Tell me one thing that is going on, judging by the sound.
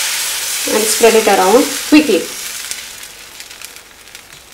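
Batter sizzles in a hot pan.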